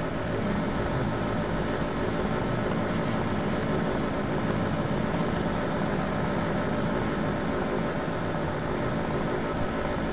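Sports car engines rumble on a starting grid.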